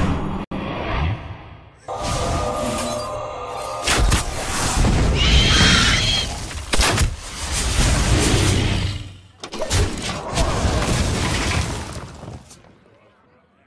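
Magical sound effects whoosh and chime.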